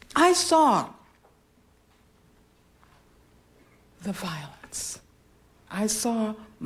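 A woman speaks slowly and expressively into a microphone, in short phrases with pauses.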